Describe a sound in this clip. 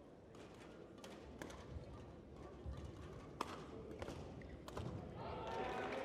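A racket strikes a shuttlecock with sharp pops.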